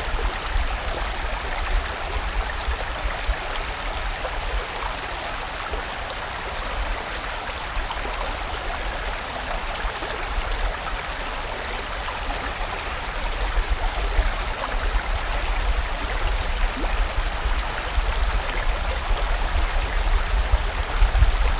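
A shallow stream rushes steadily over rocks.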